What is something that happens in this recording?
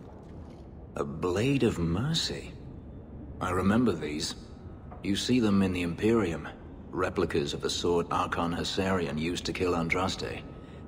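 A young man speaks in a calm, low voice, close up.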